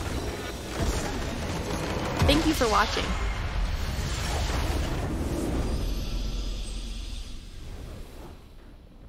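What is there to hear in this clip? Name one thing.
Magic blasts and explosions crash loudly in a game.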